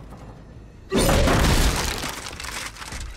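Wood cracks and smashes loudly.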